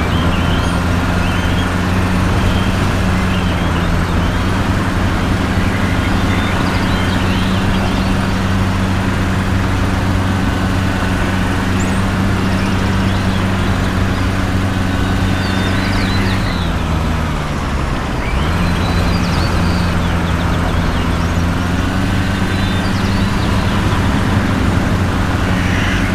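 A diesel engine hums steadily from inside a vehicle, dipping in pitch briefly as it shifts gear.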